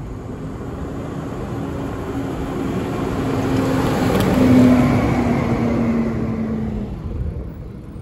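A large truck engine hums nearby and fades.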